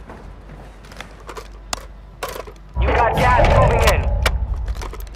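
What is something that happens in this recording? A rifle's metal parts click and clack as it is reloaded.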